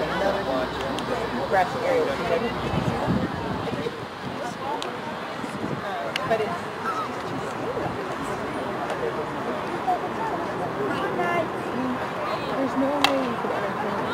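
Hockey sticks click sharply against a ball.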